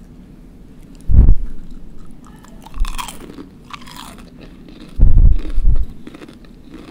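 A young woman crunches loudly on fried food close to a microphone.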